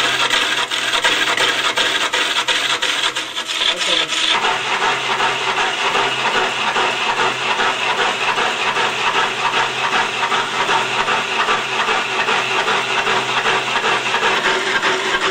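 A turning chisel scrapes and chatters against spinning wood.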